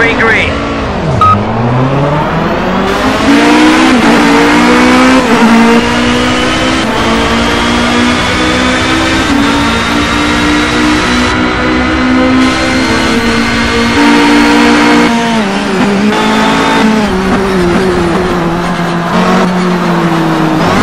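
Engines of other racing cars drone nearby.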